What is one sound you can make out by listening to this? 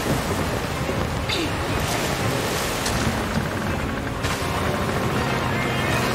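Wood splinters and smashes with a loud crash.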